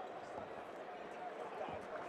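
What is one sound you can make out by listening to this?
A young man in the crowd shouts loudly.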